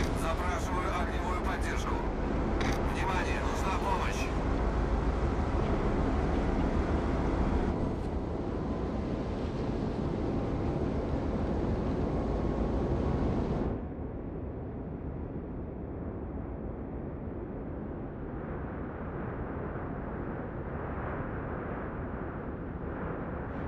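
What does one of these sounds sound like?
Water washes against a ship's hull.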